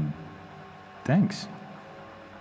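A second man briefly answers in a low voice.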